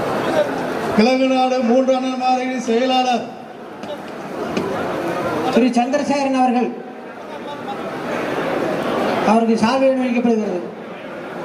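A man chants loudly through a loudspeaker in long held phrases.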